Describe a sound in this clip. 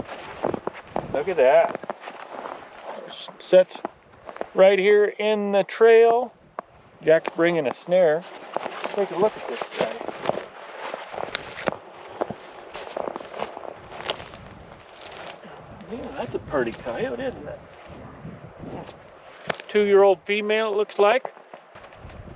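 A man speaks with animation close by, outdoors.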